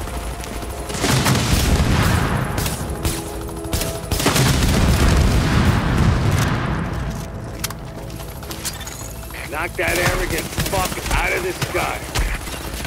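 Rifle shots ring out in rapid bursts.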